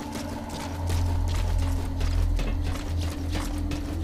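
Footsteps thud on metal stairs.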